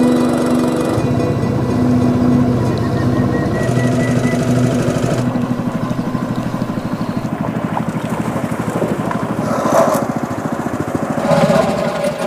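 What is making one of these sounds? A boat engine putters steadily.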